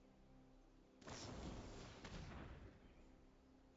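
A magical whoosh swells and fades.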